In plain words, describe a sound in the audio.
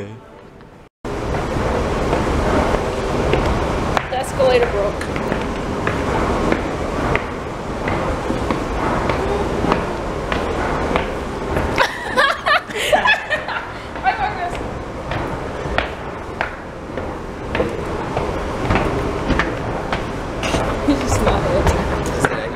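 An escalator rumbles and hums steadily.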